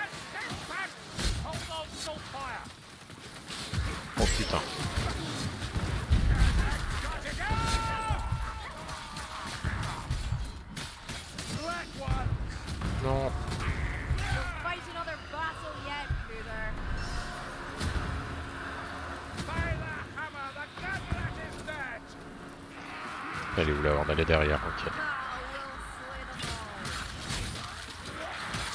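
Axes hack into enemies with heavy thuds.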